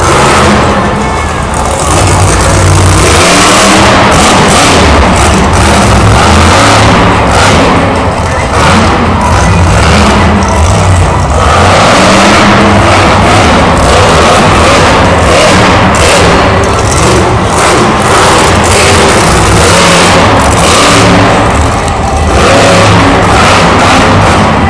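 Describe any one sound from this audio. A monster truck engine roars and revs loudly in a large echoing arena.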